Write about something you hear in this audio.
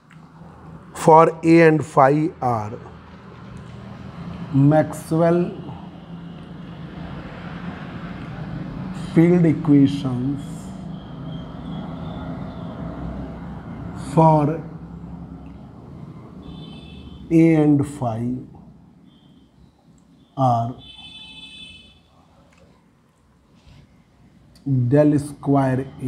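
A man speaks calmly in short phrases nearby, with pauses.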